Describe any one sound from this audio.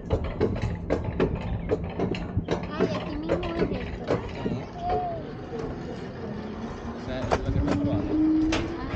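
Coaster wheels clatter and rumble along a wooden track.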